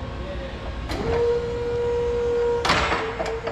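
A forklift's mast hydraulics whine loudly as the forks rise.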